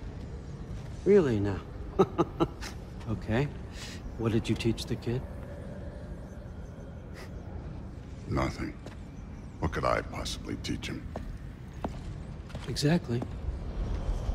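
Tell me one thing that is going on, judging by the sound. An older man speaks with a gravelly voice.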